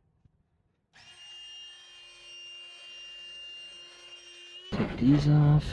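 A battery pump whirs steadily.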